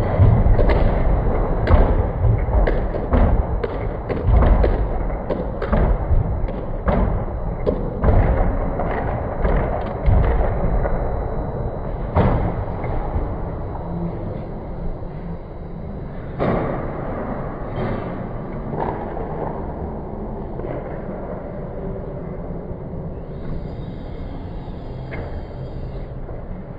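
Ice hockey skates scrape across ice.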